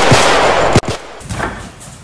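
Men crash heavily onto a hard floor.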